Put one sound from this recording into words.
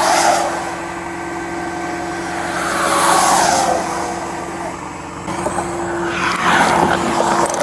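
Vehicles hiss past one after another on a wet road.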